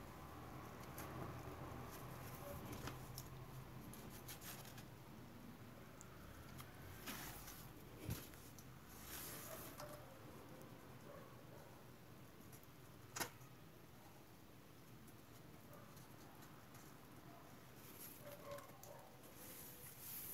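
Cloth tape rustles and crinkles as hands wrap it around wires.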